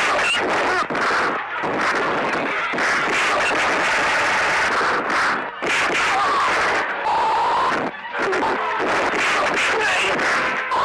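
A man shouts loudly in anger.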